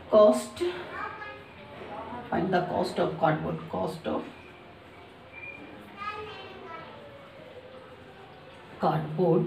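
A young woman explains calmly, close by.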